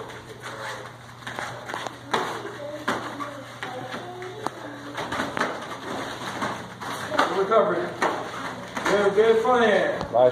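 Bare feet thump and shuffle on padded mats.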